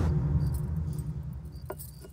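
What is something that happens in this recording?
A metal cup clinks on a table.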